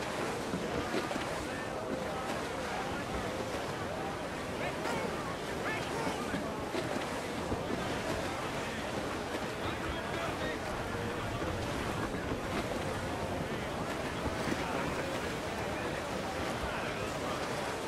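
Waves wash and splash against a sailing ship's hull.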